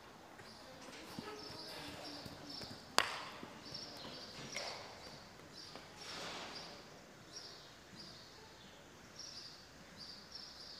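A horse's hooves thud softly on sand in a large hall.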